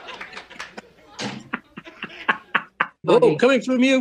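An elderly man laughs heartily over an online call.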